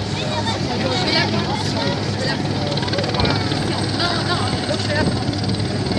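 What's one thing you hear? An outboard motor drones as a small boat speeds across the water.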